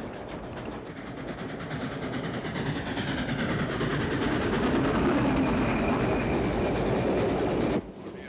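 A steam locomotive chugs and puffs as it approaches.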